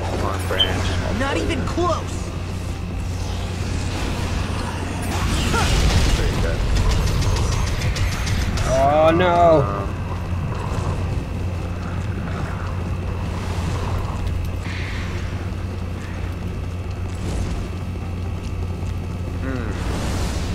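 Magical blasts and sword swooshes ring out in bursts.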